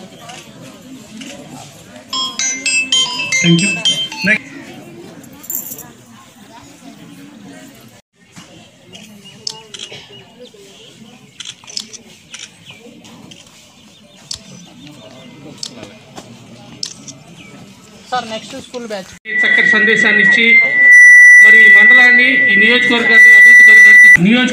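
A crowd of men and women murmur and chatter nearby.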